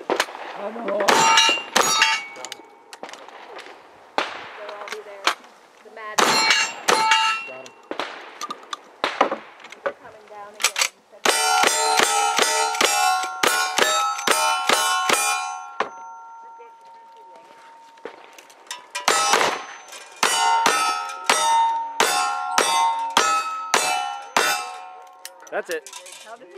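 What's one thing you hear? Guns fire loud, sharp shots in quick bursts outdoors.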